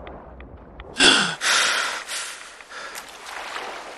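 Water splashes loudly as a swimmer breaks the surface.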